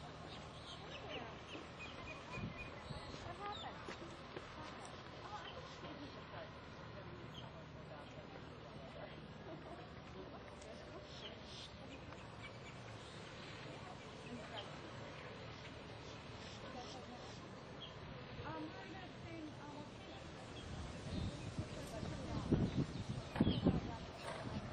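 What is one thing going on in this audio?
A horse's hooves thud on soft sand at a canter.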